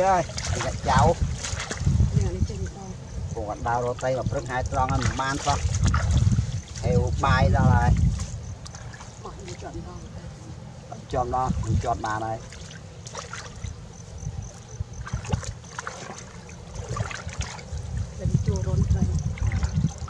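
Water splashes and sloshes as a net is lifted.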